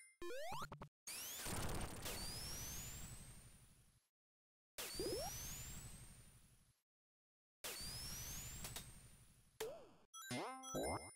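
A rushing whoosh sweeps by several times in a video game.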